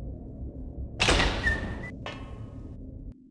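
A heavy door swings open with a loud creak and thud.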